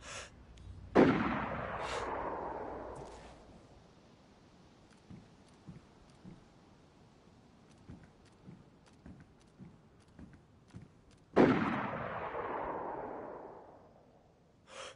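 A rifle fires two loud shots, each rolling away in a long echo.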